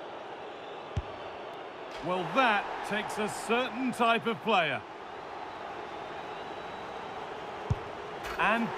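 A football is struck with a sharp thud.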